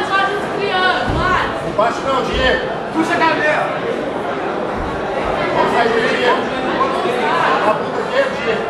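A crowd of men shouts and cheers loudly nearby.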